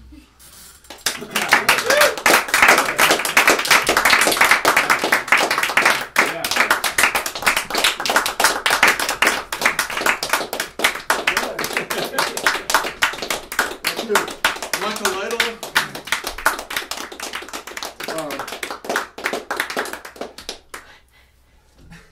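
A group of men laughs loudly and heartily.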